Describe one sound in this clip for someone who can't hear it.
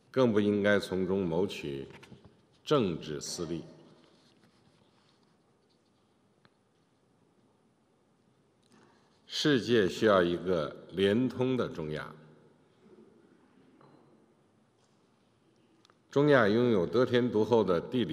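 A man speaks steadily through a microphone, in a measured voice, with pauses between phrases.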